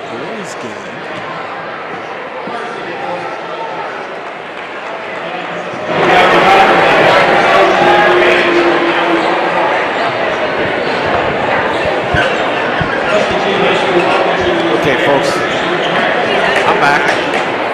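A crowd chatters and cheers loudly in a large echoing gym.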